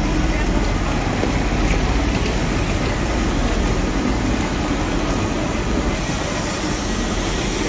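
Suitcase wheels roll and rattle over a hard floor.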